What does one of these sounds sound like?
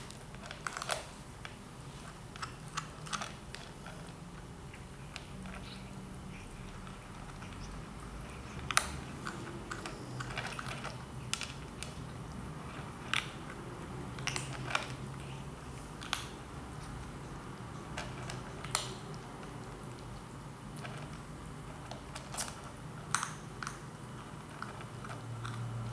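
Kittens crunch dry food from a plastic bowl with small clicks and taps.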